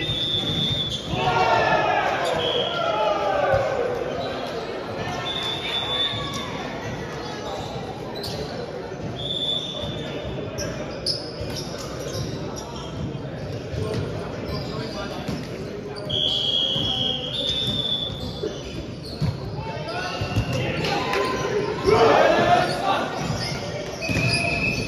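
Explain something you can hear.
Young adult players shout and call out to each other in a large echoing hall.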